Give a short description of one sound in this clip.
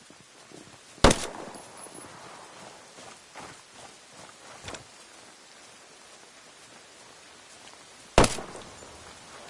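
A pistol fires loud single shots.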